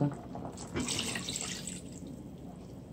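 Water pours into a pot of liquid and splashes.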